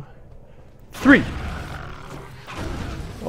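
A game weapon fires with a sharp blast.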